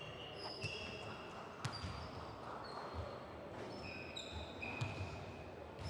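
A basketball thumps on a hard court.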